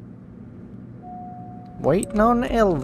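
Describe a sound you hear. An elevator bell chimes once with a steady tone.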